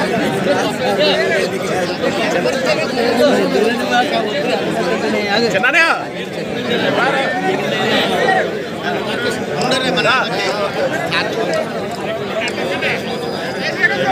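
A crowd of men talk and chatter all around, close by.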